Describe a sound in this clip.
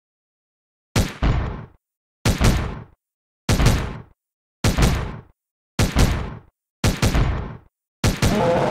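Game gunshots fire in quick bursts.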